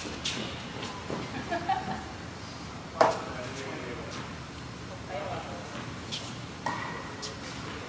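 Tennis balls pop off rackets in an echoing indoor hall.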